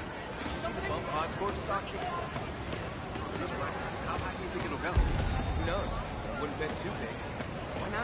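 Footsteps patter on stone pavement.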